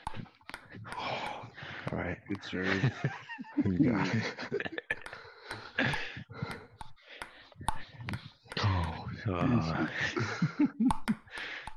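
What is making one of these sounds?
A ping-pong ball clicks sharply against paddles and a table.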